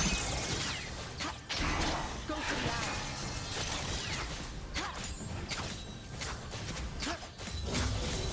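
Magic spells whoosh and crackle in a fast-paced fight.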